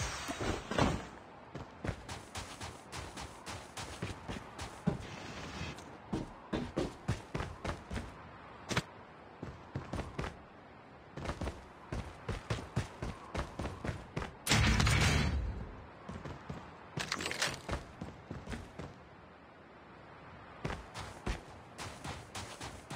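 Footsteps patter quickly on hard ground.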